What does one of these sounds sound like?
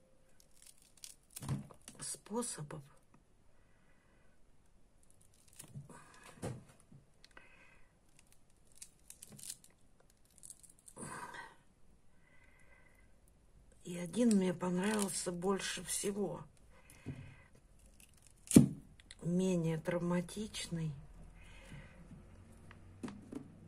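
Small scissors snip and click close by.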